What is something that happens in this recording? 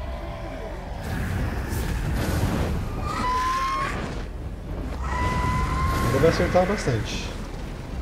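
A burst of magical fire roars and crackles.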